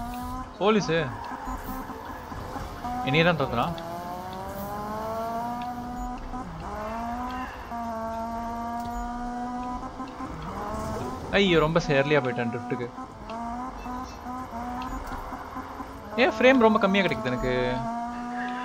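Tyres screech in short bursts as a car drifts.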